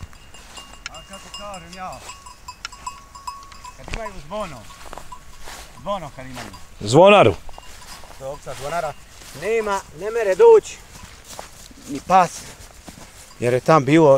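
Sheep bleat loudly close by, many times.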